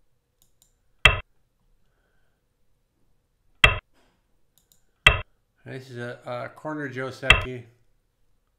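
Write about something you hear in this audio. A game stone clicks sharply onto a board several times.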